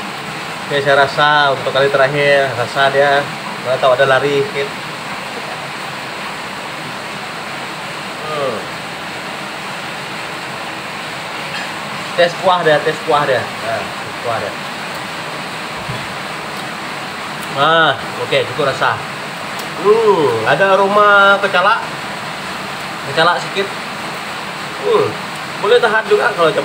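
Thick curry bubbles and simmers in a pan.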